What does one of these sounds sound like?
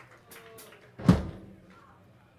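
A drum thumps once.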